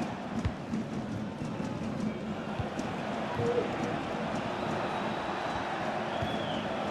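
A large stadium crowd roars and chants steadily.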